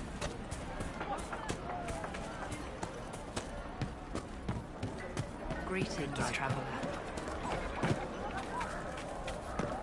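Footsteps patter quickly on grass and dirt.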